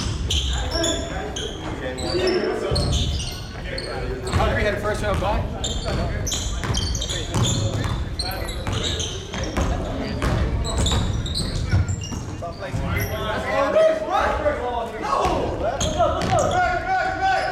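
Basketball shoes squeak sharply on a gym floor.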